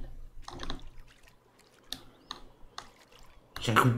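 Water splashes softly as someone swims.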